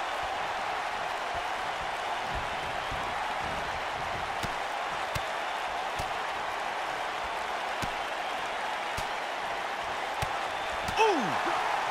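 Wrestlers thud against the ring mat.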